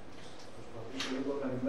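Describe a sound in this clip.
An elderly man speaks calmly through a microphone in a quiet hall.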